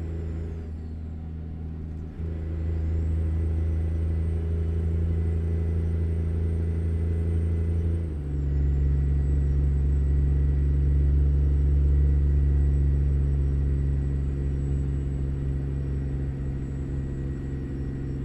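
A truck's diesel engine drones steadily from inside the cab, shifting gear twice.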